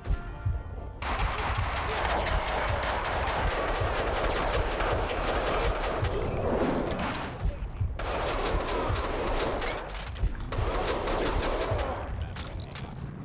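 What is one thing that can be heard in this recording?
A submachine gun fires rapid bursts of shots that echo in a hard room.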